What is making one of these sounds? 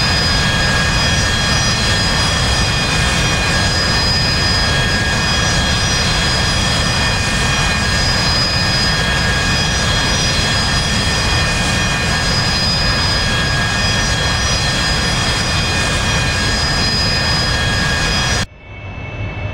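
A jet engine roars and whines steadily.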